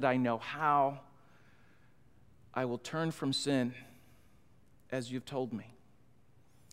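A middle-aged man speaks with feeling through a microphone, pausing between phrases.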